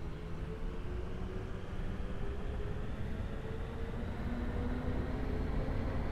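A train rumbles steadily along the rails with a low whining motor.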